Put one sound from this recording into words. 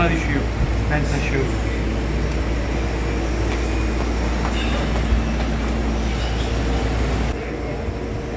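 Laundry machines hum steadily.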